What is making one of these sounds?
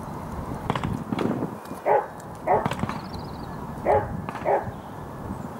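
Horse hooves clop slowly on a hard path.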